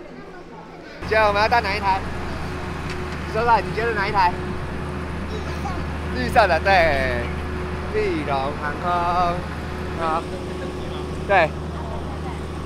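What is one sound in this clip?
A young man talks cheerfully close by.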